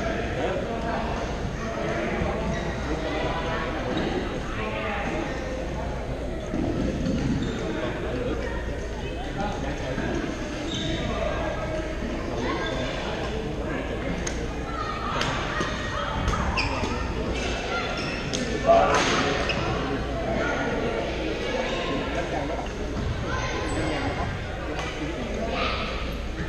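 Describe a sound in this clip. Several young men talk and call out across an echoing hall.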